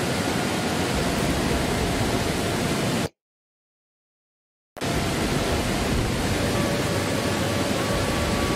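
A waterfall pours and splashes steadily.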